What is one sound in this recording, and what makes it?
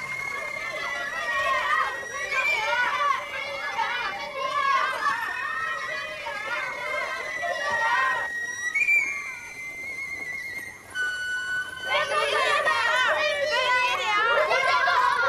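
Children shout and laugh with excitement nearby.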